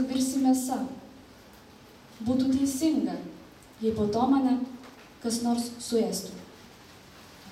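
A young woman reads aloud calmly into a microphone.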